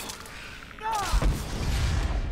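A fire spell roars and crackles in bursts.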